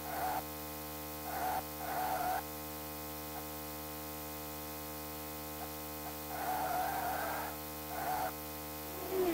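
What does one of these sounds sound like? Tyres screech in short bursts through the corners.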